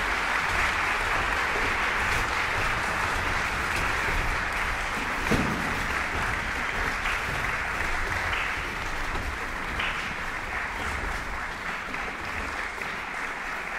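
Footsteps thud softly on wooden risers in a large hall.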